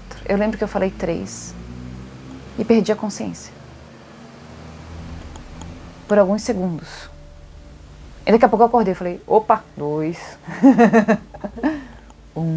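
A young woman speaks calmly and expressively close to a microphone, with pauses.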